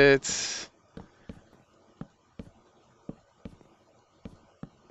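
Footsteps tap lightly on wooden boards.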